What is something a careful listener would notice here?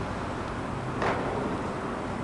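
A tennis racket strikes a ball with a loud pop.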